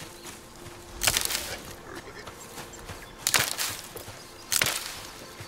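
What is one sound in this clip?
An axe chops into a tree with loud thuds.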